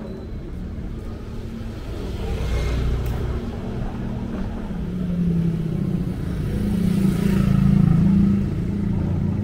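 A motorcycle engine hums as it passes close by.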